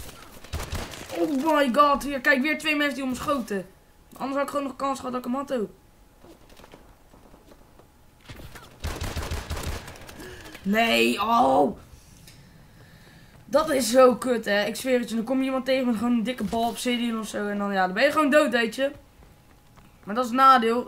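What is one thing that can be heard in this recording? A boy talks with animation close to a headset microphone.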